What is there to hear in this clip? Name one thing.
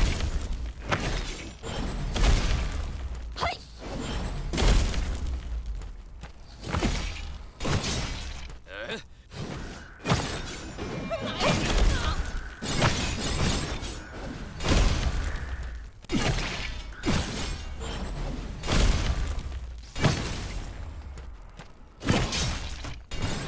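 Blades slash and strike with sharp, repeated impacts.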